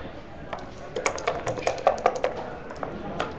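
Dice rattle in a cup being shaken.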